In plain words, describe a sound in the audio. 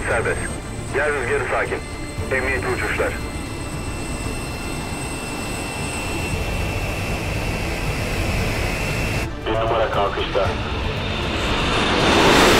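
Jet engines roar steadily, swelling louder toward the end.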